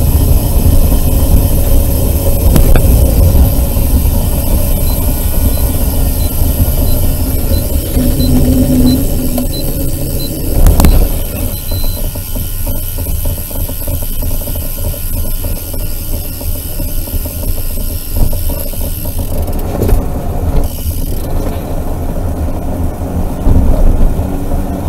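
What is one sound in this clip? Wind rushes loudly past a moving vehicle.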